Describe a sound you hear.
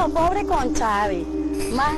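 A woman speaks cheerfully close by.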